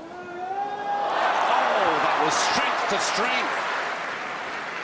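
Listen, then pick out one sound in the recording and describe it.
A large outdoor crowd cheers and applauds.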